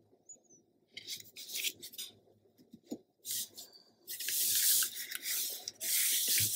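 Hands rub and smooth down paper.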